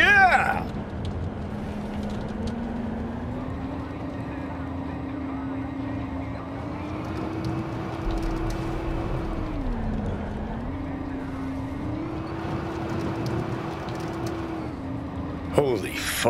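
A roller coaster car rumbles steadily along its track, its hum rising and falling.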